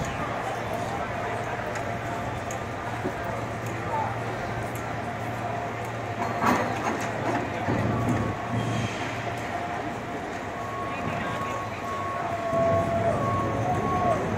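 Metal wheels of a cable car squeal as it turns.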